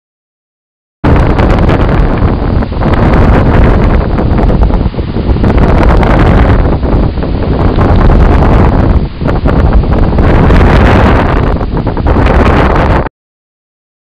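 Surf crashes and roars on the shore.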